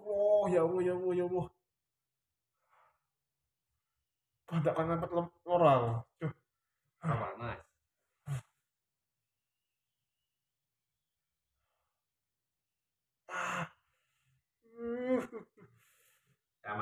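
A young man groans and cries out in pain close by.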